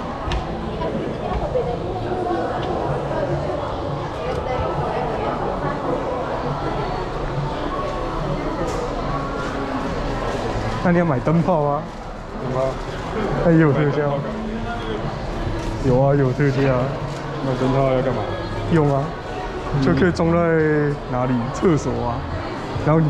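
A crowd of shoppers murmurs indoors.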